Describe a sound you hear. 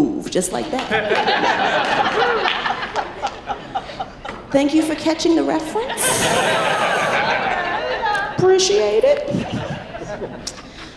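A woman speaks expressively into a microphone.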